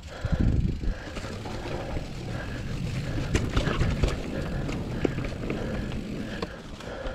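A bike's chain and frame rattle and clatter over bumps.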